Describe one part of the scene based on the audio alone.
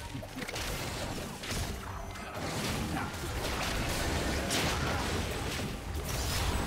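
Magic blasts and hits crackle and whoosh as fighters battle a large monster.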